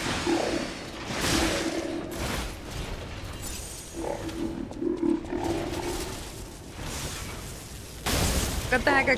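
Metal weapons clash and whoosh in a fight.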